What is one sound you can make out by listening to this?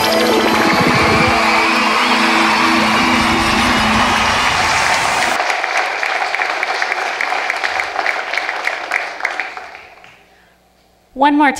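A group of children sing together, echoing in a large hall.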